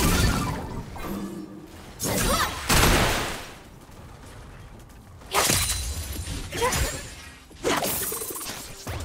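Magic blasts burst and crackle in a fight.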